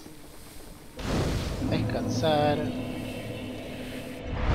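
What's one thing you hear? A fire flares up and crackles.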